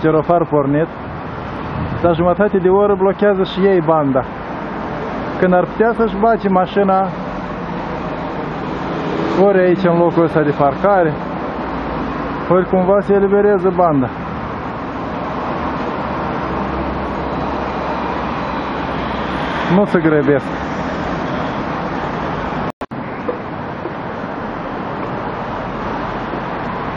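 Traffic hums steadily along a busy street outdoors.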